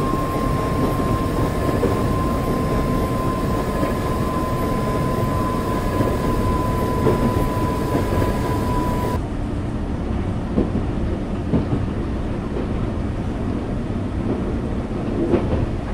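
An electric train rumbles along rails, heard from the cab.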